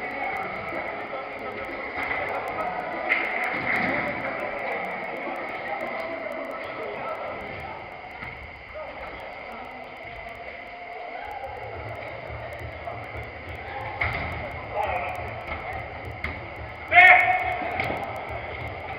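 Men shout to each other across a large echoing indoor hall.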